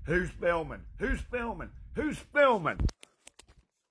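An older man speaks angrily and close up into a phone microphone.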